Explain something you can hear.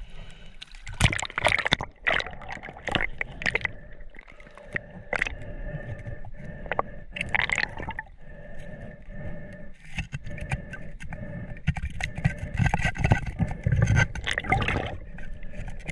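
Water gurgles and bubbles, heard muffled from underwater.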